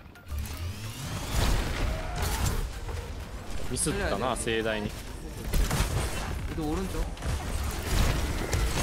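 Game gunfire and explosions crackle and boom throughout.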